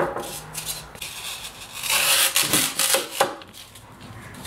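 A knife cuts through foam with a squeaky scrape.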